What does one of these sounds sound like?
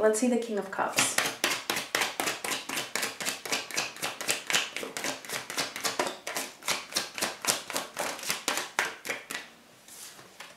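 A deck of cards is shuffled with quick, rapid flicking.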